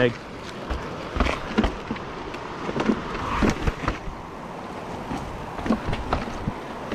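Bicycle tyres rattle and thump over a rocky trail.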